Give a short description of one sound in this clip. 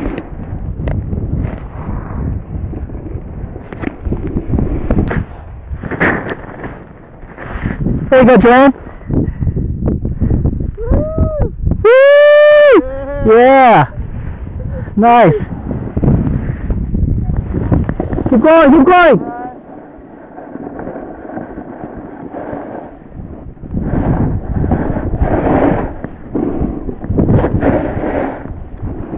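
Wind rushes loudly past close by, outdoors.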